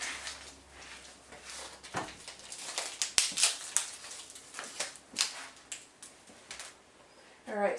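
Papers rustle and crinkle close by.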